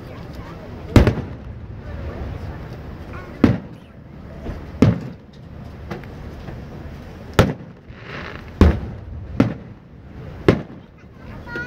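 Fireworks boom and crack loudly outdoors, one after another.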